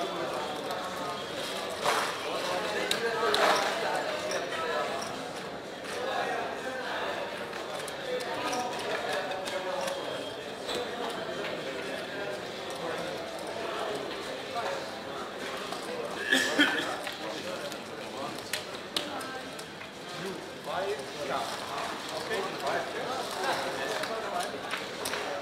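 Casino chips click and clatter as they are stacked and sorted.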